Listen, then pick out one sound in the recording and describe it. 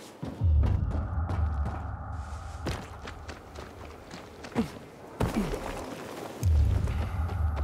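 A person lands hard on the ground after a jump, with a heavy thud.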